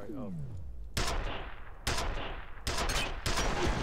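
Gunshots fire in loud bursts and echo off hard walls.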